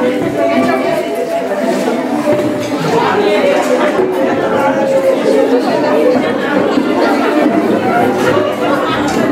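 A crowd of women and men chatters close by.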